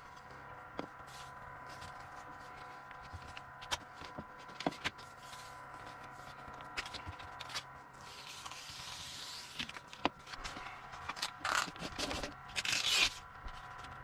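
Paper rustles as hands handle a strip of it.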